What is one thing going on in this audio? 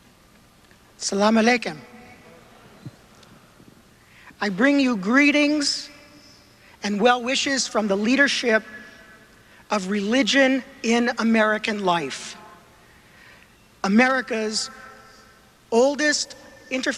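A middle-aged man speaks calmly into a microphone in a large hall.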